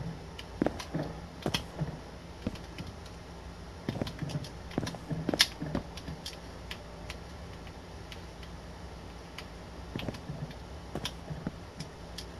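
Wooden blocks are placed with short knocking clicks.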